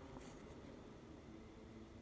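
A plastic spoon scrapes through soft ice cream.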